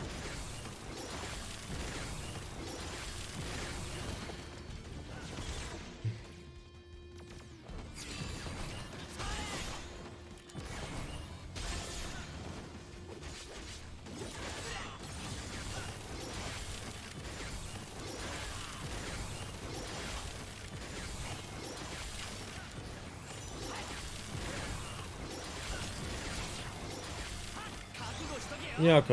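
Sword slashes and magic blasts ring out in a video game battle.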